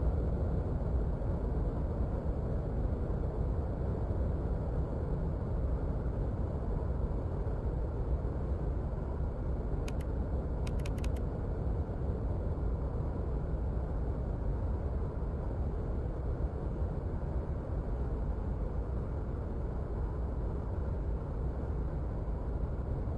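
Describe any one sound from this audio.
A jet engine rumbles steadily.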